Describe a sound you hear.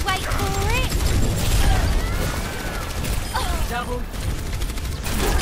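Energy blasts and explosions boom and hiss.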